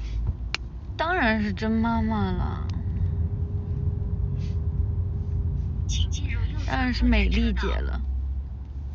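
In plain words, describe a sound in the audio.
A young woman speaks briefly and close by, in short bursts.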